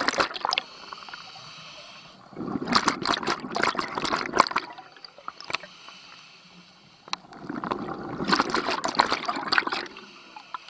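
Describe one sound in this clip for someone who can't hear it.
Exhaled bubbles rush and gurgle in bursts underwater.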